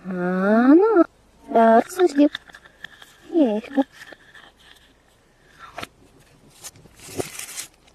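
A plastic capsule clicks as it is pulled open.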